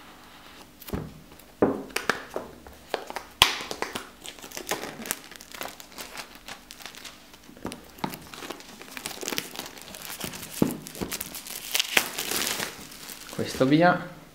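Plastic wrap crinkles and rustles under fingers.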